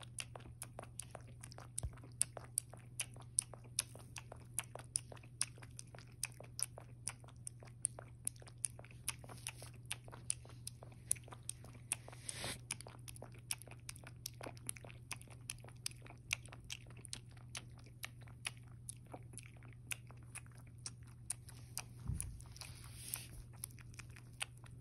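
A cat laps and chews food from a bowl with quick, wet clicking sounds close by.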